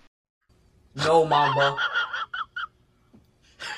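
A young man exclaims excitedly into a headset microphone.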